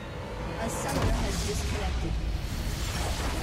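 A deep rumbling blast booms out of a video game.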